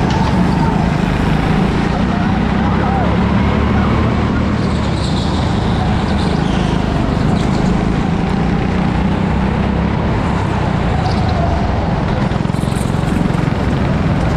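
Tyres squeal on a smooth track.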